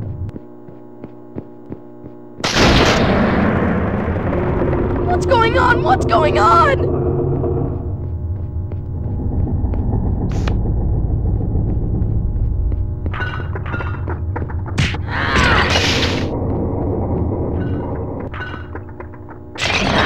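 Quick footsteps thud on wooden boards.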